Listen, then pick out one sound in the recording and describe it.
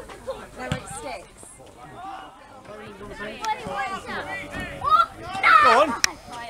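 Adult men shout to each other across an outdoor football pitch.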